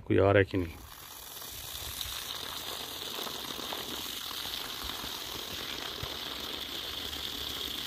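Water gushes steadily from a hose and splashes down.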